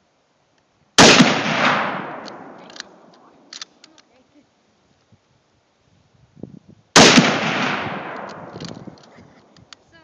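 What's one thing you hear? A rifle fires two loud shots close by, each echoing and rolling away outdoors.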